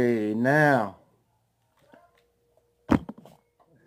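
A middle-aged man gulps from a water bottle.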